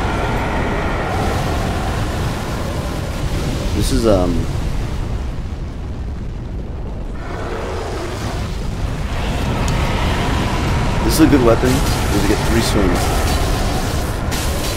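Fire roars in low, steady rumbling bursts.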